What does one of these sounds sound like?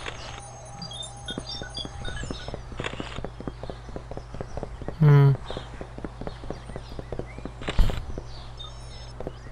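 Quick light footsteps patter steadily on a hard path.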